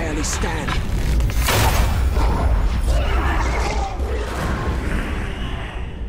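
A large beast growls and snarls close by.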